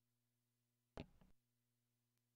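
A tonearm clicks into its rest.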